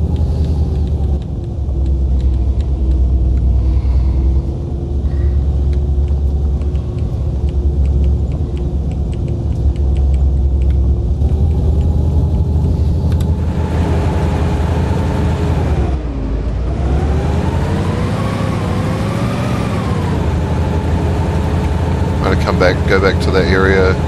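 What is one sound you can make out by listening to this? Tyres roll over rough ground.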